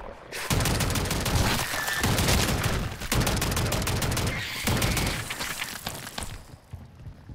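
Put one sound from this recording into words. Loud explosions boom and rumble close by.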